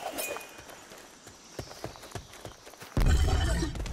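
Footsteps crunch on grass.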